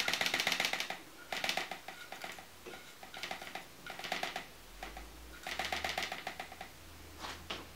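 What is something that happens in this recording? A paintbrush scrubs briskly against paper in quick, rhythmic strokes.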